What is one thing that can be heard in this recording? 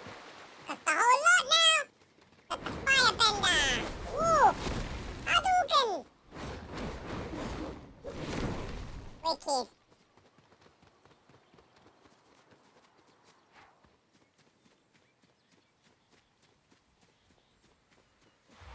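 Footsteps patter quickly on dirt and grass.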